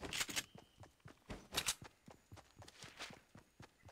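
A wooden ramp is built with quick knocks.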